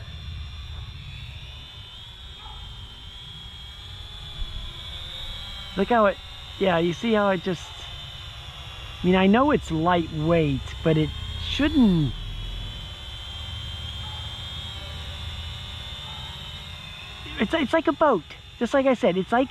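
A drone whines steadily in the air.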